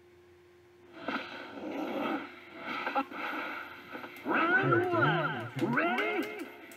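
Fast game music plays through a television speaker.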